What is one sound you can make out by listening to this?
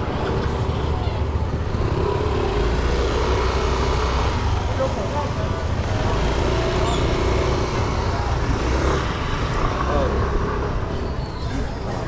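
Scooter engines idle and rumble nearby.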